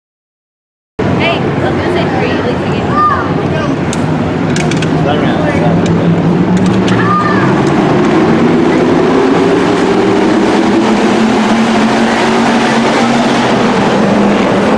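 Race car engines roar and rumble as a pack of cars circles a dirt track outdoors.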